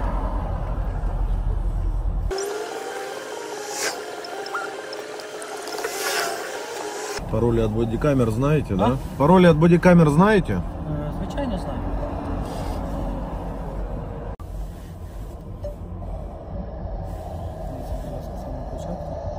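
Another man answers calmly from outside a car window.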